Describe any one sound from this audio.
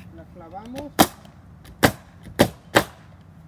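A nail gun fires several sharp shots.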